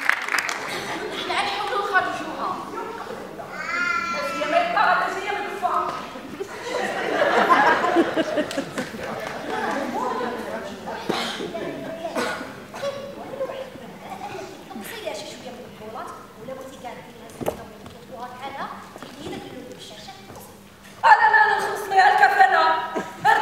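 Young women speak with animation on a stage in a large echoing hall.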